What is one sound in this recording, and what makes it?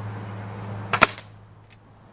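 An air rifle fires a single sharp shot.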